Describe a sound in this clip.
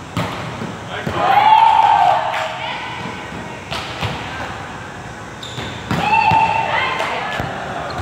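Shoes squeak sharply on a wooden floor.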